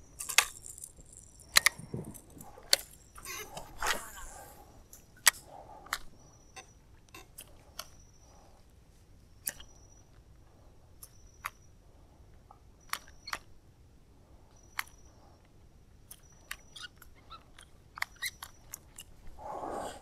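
A fishing reel clicks and whirs as a line is cast and reeled in.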